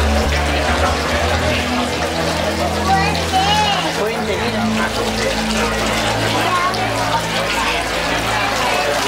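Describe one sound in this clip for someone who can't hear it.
A crowd of people chatters in the background.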